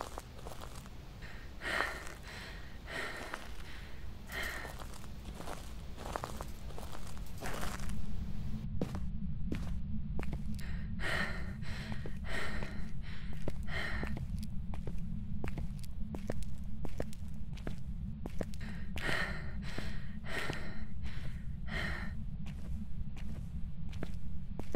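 Footsteps echo steadily on a hard floor.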